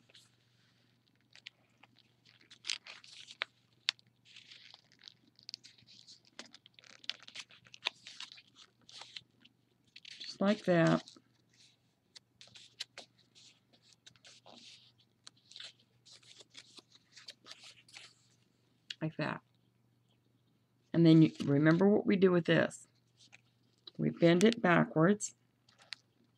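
Paper rustles and crinkles as it is folded and creased.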